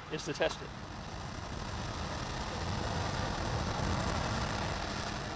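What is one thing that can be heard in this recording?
A rocket engine roars steadily with a deep rumble.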